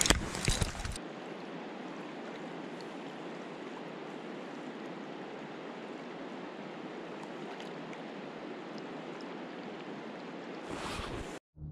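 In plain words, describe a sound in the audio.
A river flows steadily and gently.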